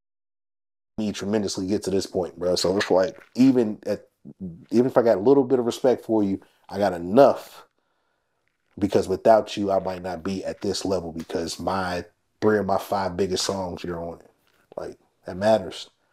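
A man talks calmly and with animation, close to a microphone.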